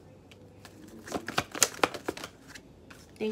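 Playing cards are shuffled with quick, crisp flicks.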